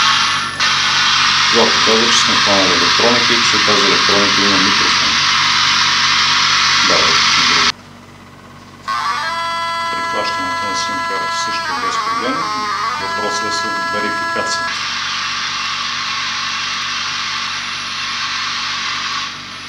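An electronic detector gives off a loud, steady hiss of static.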